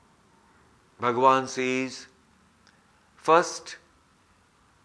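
A middle-aged man chants slowly and calmly, close to a microphone.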